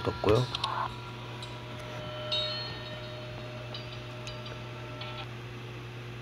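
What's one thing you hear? Short electronic chimes ring out and fade.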